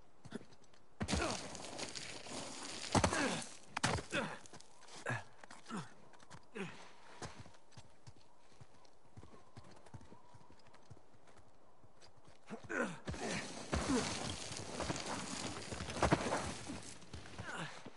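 Loose stones scrape and rattle as someone slides down a rocky slope.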